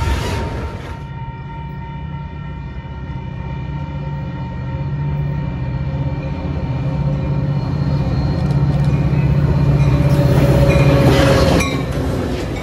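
A diesel locomotive approaches with a growing, droning roar.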